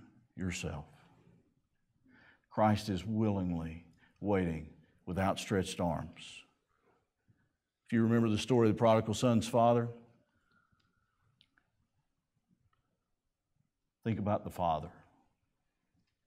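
A middle-aged man speaks calmly through a microphone, with pauses.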